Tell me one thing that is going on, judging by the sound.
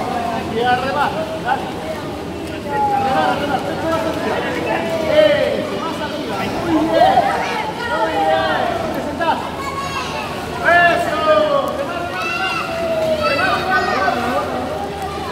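Water splashes as swimmers paddle in an echoing indoor pool.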